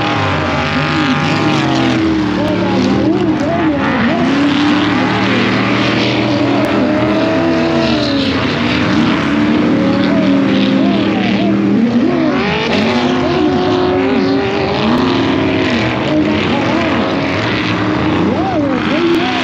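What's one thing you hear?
Several off-road vehicle engines roar nearby and rev up and down.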